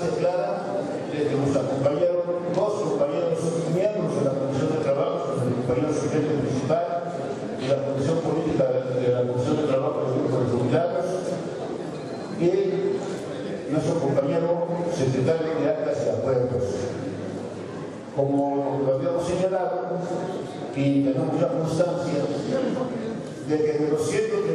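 A middle-aged man speaks with animation into a microphone, heard through loudspeakers in a large echoing hall.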